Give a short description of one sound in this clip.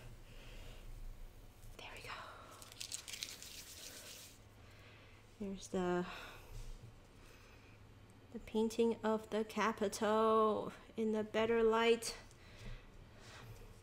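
Paper rustles and slides on a cutting mat.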